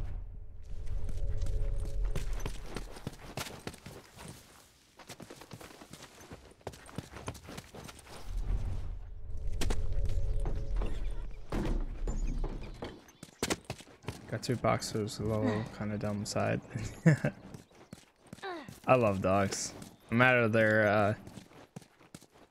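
Footsteps crunch over debris and pavement.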